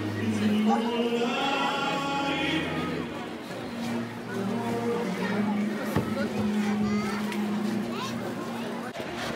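People chat and murmur nearby outdoors.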